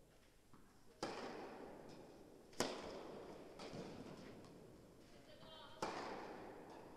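Tennis balls are struck hard with rackets, with a ringing echo in a large hall.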